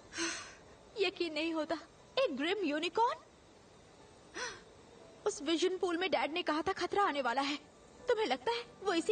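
A young woman speaks softly and gently, close by.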